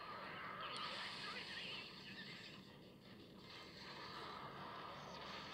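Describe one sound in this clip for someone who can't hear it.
Fiery blasts crackle and whoosh in a video game.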